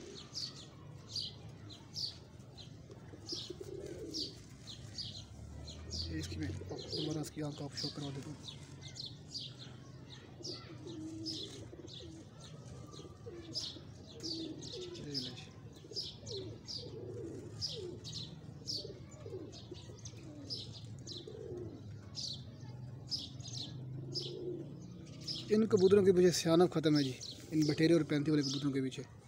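Feathers rustle softly as a pigeon is handled.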